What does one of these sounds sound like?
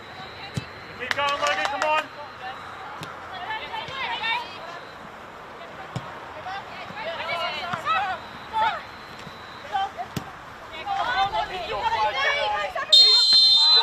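Young women shout to each other outdoors across an open field.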